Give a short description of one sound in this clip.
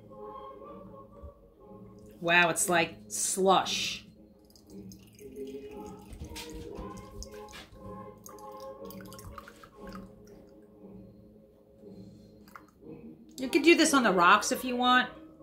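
Liquid pours from a cocktail shaker into a glass.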